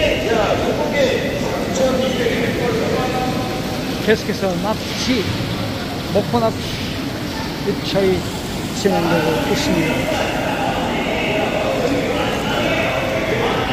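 A crowd of men and women talks loudly in a large echoing hall.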